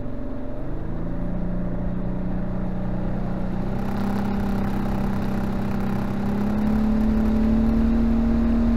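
A boat motor hums steadily and slowly rises in pitch.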